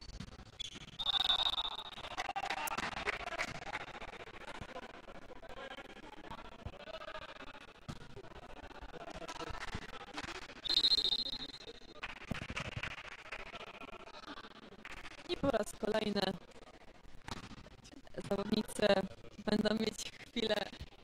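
Young men shout and cheer in a large echoing hall.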